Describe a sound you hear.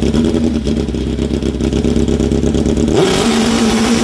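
A drag motorcycle engine idles with a deep rumble.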